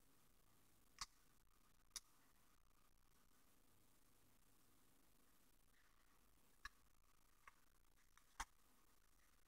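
Paper crinkles softly as fingers fold a banknote.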